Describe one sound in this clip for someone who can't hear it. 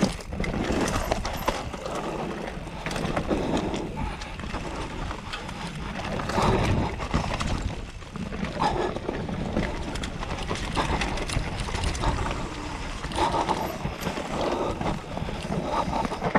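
Bike tyres roll and crunch over a bumpy dirt trail.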